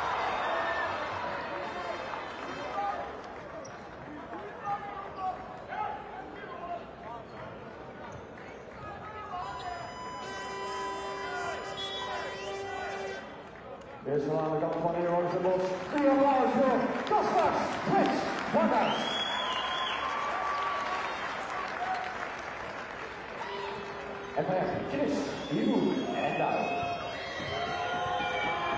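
A crowd in a large echoing arena cheers and chants throughout.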